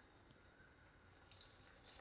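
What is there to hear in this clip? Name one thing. Water pours into flour in a bowl.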